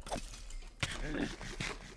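A game character munches on food.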